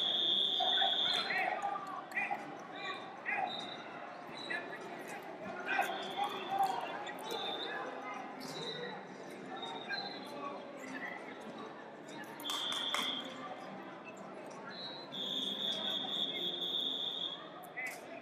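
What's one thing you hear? Many people talk and call out in a large echoing hall.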